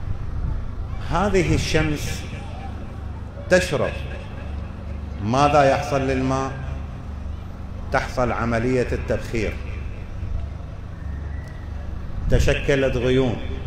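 An elderly man speaks slowly and with feeling through a microphone, in an echoing hall.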